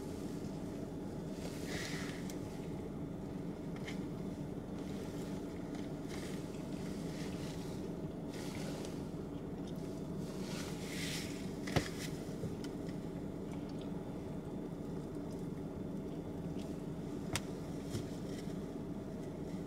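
A woman chews food softly and smacks her lips.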